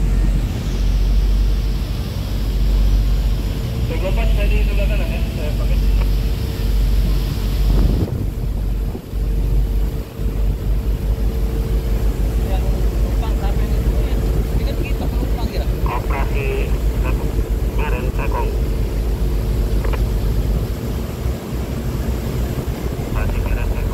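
Strong wind rumbles across the microphone outdoors.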